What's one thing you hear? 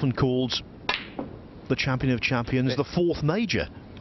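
A cue tip strikes a snooker ball with a sharp click.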